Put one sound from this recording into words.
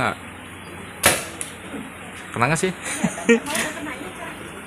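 A paintball marker fires with a sharp pop.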